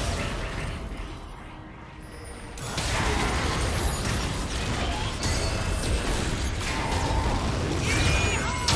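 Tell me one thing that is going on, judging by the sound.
Magic blasts and explosions crackle and boom in a fast battle.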